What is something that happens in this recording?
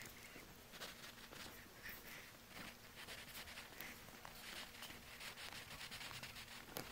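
A pencil scratches across paper in short strokes.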